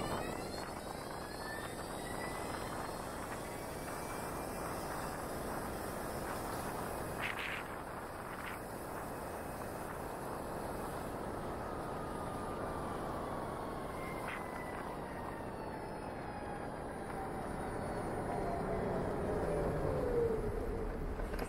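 A motorcycle engine hums steadily, with a whine that falls as the motorcycle slows.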